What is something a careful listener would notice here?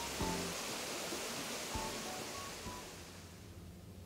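Water pours steadily over a waterfall.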